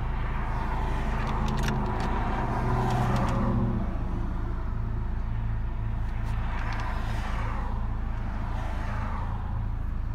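A car engine rumbles steadily, heard from inside the car.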